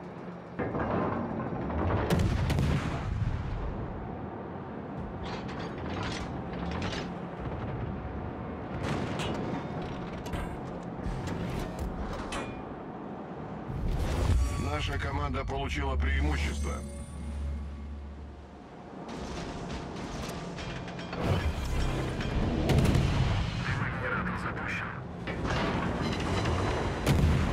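Heavy naval guns fire in deep, booming blasts.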